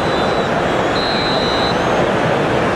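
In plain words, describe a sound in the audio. A referee's whistle blows once, briefly.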